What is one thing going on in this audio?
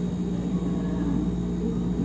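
Thick juice pours from a blender jug into a cup.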